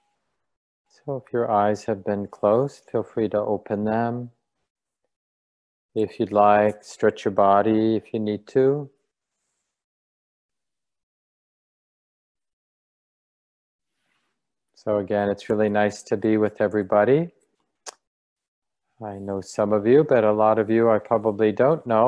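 A middle-aged man speaks calmly into a microphone, heard as if over an online call.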